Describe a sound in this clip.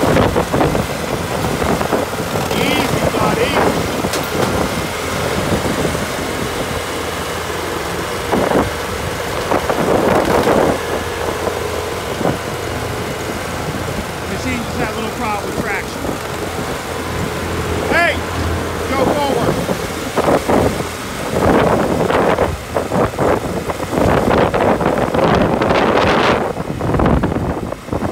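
A small engine runs steadily up close.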